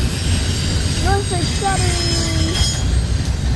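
Metal wheels squeal on the rails.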